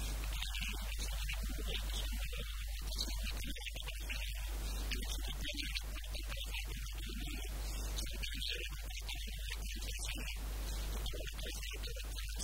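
A middle-aged man speaks calmly into a microphone close by.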